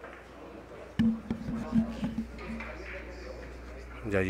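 Billiard balls click together on a table.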